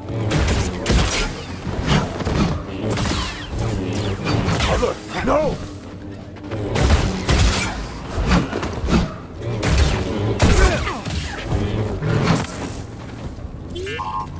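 Glowing blades hum and clash with sharp crackling impacts.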